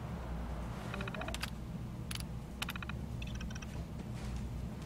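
A computer terminal clicks and beeps as keys are pressed.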